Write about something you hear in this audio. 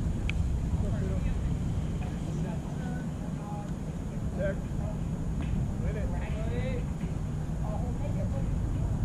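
Distant young men call out across an open field.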